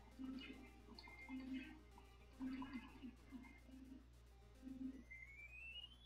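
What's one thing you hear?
Bouncy electronic game music plays with short bleeps.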